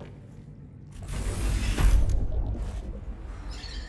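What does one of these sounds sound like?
Water rushes and splashes as a hatch opens onto the sea surface.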